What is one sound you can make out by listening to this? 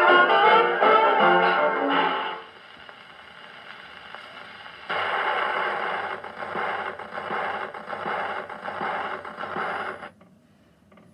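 Music plays from a scratchy old gramophone record.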